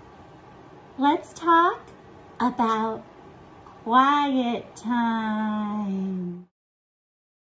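A woman speaks in a playful, sing-song voice close to a microphone.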